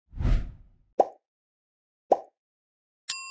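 A mouse clicks twice.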